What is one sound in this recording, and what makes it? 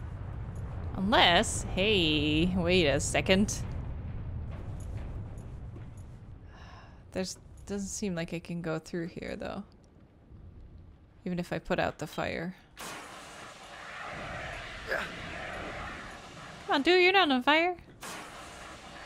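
A young woman talks with animation through a close microphone.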